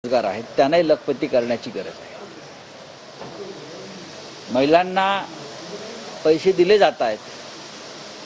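A middle-aged man speaks into microphones in short bursts, with pauses between.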